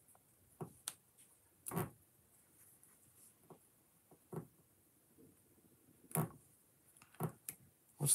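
Small plastic bricks click and snap together between fingers.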